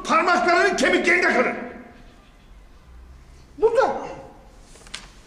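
An elderly man speaks forcefully into a microphone, his voice raised and echoing.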